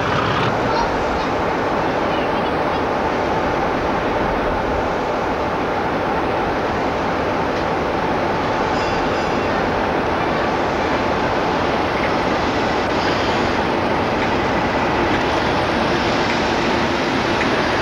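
Train wheels rumble and clatter along the rails.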